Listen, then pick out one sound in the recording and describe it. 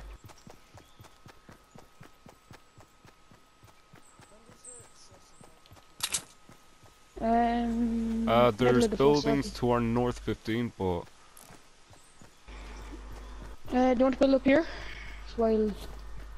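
Quick footsteps patter over grass.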